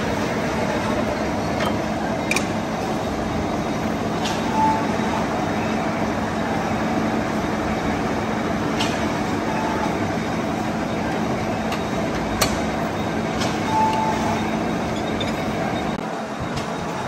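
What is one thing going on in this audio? A lathe's cutting tool turns a steel workpiece.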